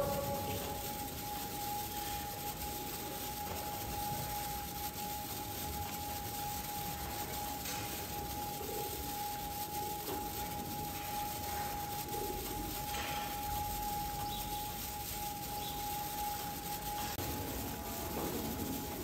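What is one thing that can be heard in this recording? A rotating cow brush whirs steadily as it scratches a cow's back.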